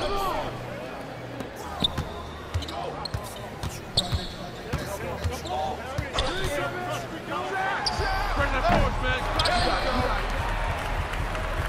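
A basketball thumps as it is dribbled on a hardwood court.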